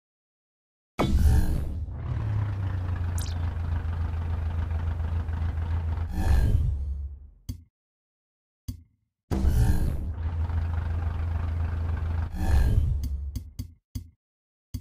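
A car engine roars and revs hard.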